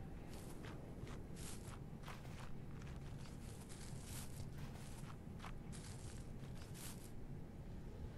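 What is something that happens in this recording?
Quick footsteps rustle through grass and leaves.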